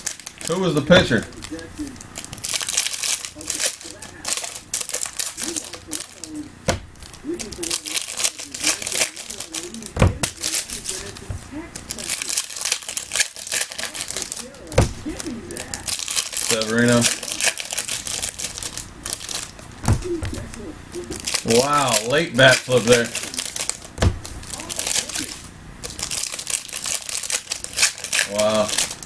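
Foil wrappers crinkle and rustle as packs are torn open.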